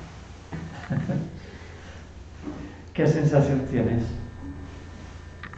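A man laughs softly nearby.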